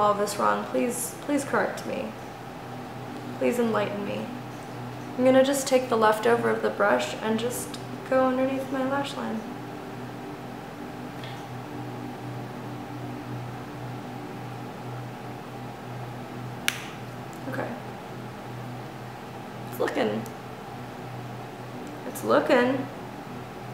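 A young woman talks calmly and close by, in bursts with pauses.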